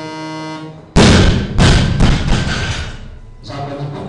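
A heavy barbell crashes down onto the floor and bounces.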